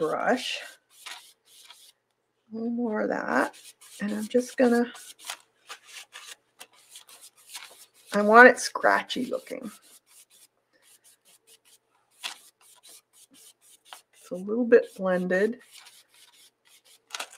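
A brush scrubs softly across paper.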